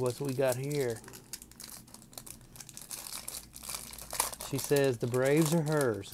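A plastic wrapper crinkles and rustles close by as it is torn open.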